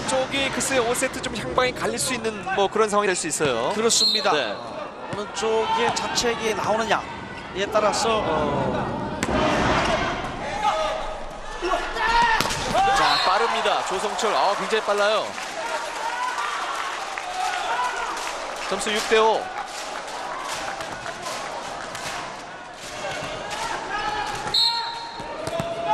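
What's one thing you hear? A large indoor crowd cheers and chants in an echoing hall.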